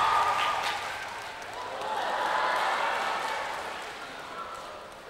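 A woman sings loudly in a large hall.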